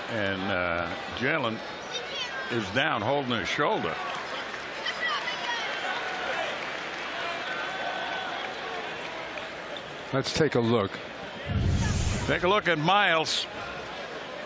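A large arena crowd murmurs and cheers.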